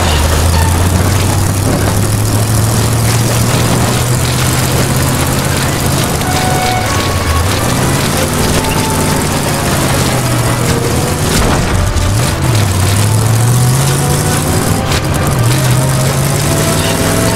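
Tyres rumble over rough dirt.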